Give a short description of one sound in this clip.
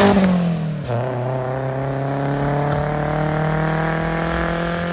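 Another car engine drones steadily as the car approaches from a distance.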